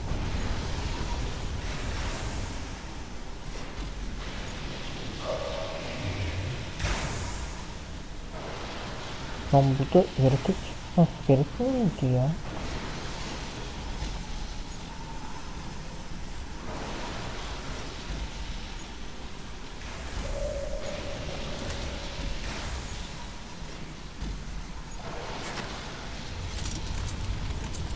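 Heavy metallic footsteps thud steadily.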